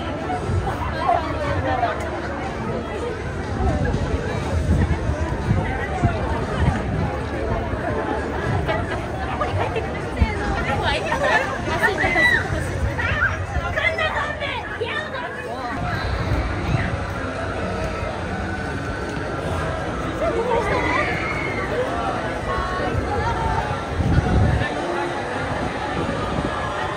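A large crowd chatters and murmurs all around outdoors.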